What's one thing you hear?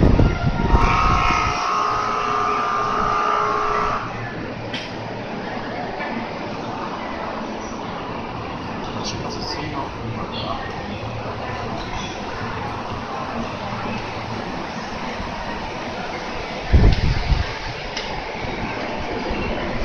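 A parked train hums steadily nearby.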